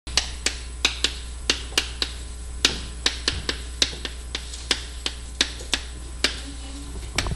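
Chalk taps and scrapes on a board in quick strokes.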